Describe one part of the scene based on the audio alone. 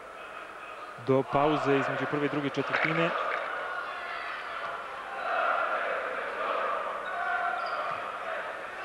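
A large crowd murmurs and chatters in an echoing arena.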